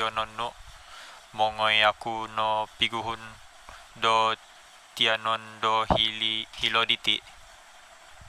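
A young man talks on a phone close by, with animation.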